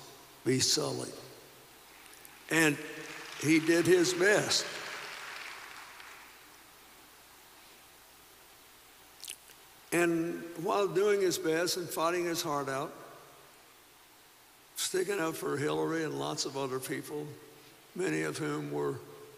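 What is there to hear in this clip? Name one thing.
An elderly man speaks slowly and warmly into a microphone in a large echoing hall, with long pauses.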